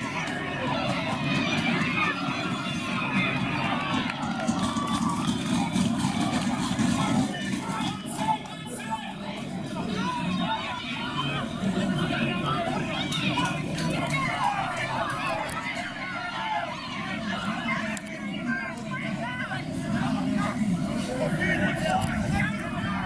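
A crowd of spectators cheers outdoors.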